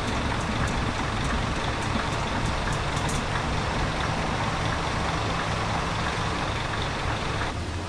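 A bus engine rumbles steadily and low.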